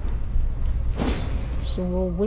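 A burst of sparks crackles and flares.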